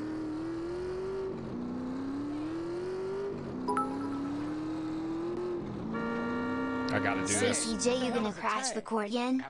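A motorbike engine revs and rises in pitch as it speeds along.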